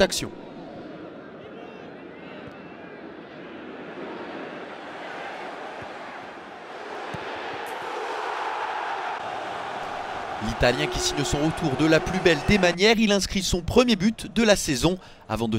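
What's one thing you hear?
A large stadium crowd roars, swelling loudly as a goal is scored.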